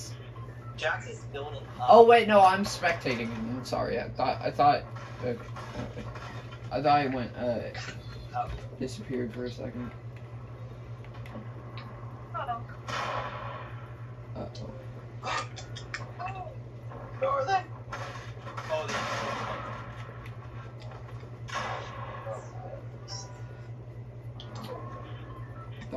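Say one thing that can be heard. Video game shots and clatter play from a television loudspeaker.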